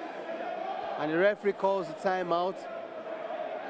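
A man shouts loudly several times.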